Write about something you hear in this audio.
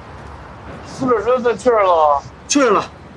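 A man asks a question in a calm, serious voice.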